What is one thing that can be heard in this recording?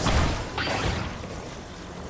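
A magical whoosh sweeps loudly.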